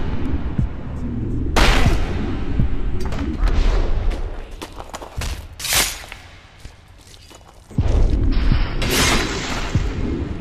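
Swords swish and clash in a fight.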